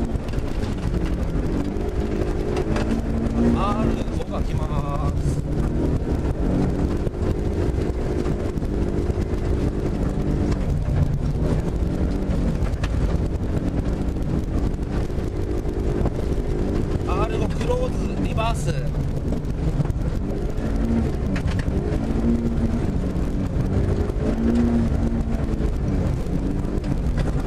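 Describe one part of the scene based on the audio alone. A car engine hums steadily and revs up and down.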